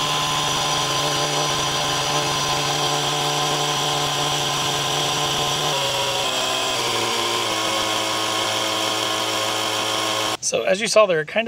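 A portable air compressor hums and buzzes steadily.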